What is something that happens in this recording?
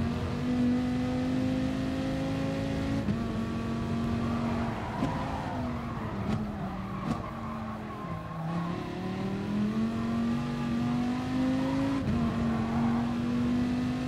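A racing car engine roars, rising through the gears and dropping as it brakes.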